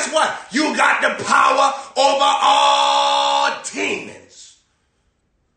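A young man shouts and preaches with fervour close by.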